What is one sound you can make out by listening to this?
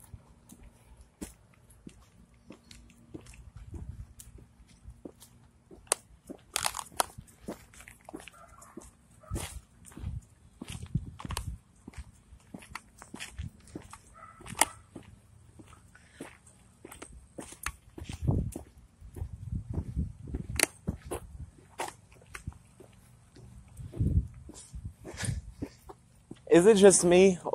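Footsteps tread steadily on a paved road.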